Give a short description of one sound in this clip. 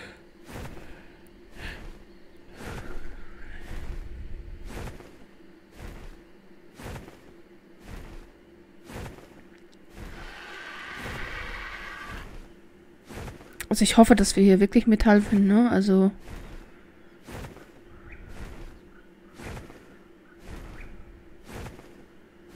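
Large wings flap in a steady rhythm, with a whoosh about once a second.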